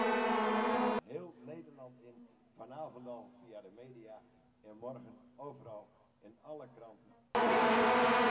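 A man speaks with animation through a loudspeaker.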